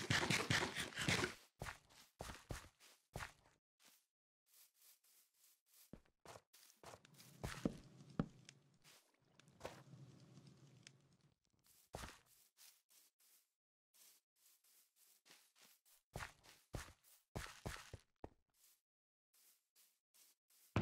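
Footsteps tread softly on grass and gravel.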